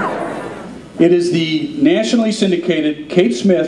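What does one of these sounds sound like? A man speaks into a microphone, reading out with animation over a loudspeaker.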